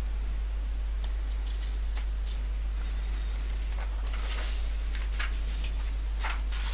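A sheet of paper rustles as it slides away.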